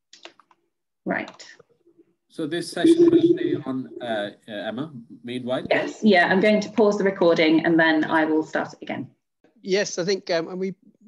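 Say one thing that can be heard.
A second man speaks with animation over an online call.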